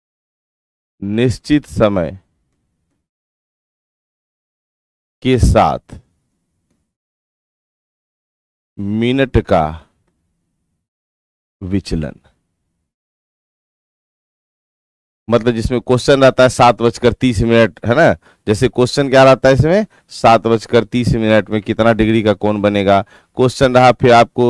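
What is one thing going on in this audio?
A man speaks calmly into a close microphone, in short bursts and then at length.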